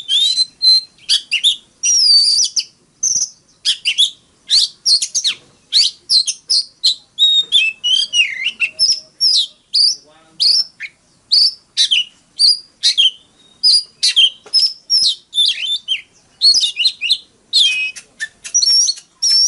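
A songbird sings loud, varied whistling phrases up close.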